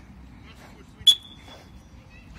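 A referee blows a short, shrill whistle close by.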